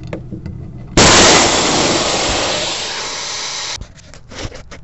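Compressed air bursts out of a fitting with a loud, sharp hiss, then cuts off.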